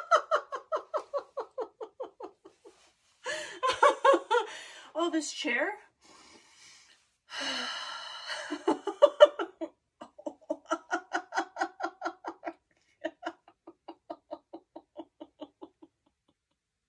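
A middle-aged woman laughs heartily close by.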